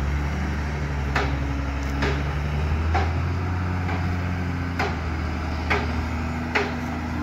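A diesel engine idles nearby with a steady low rumble.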